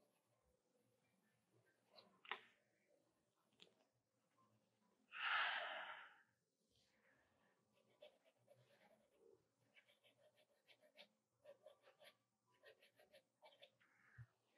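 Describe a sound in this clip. A pencil scratches lightly on paper.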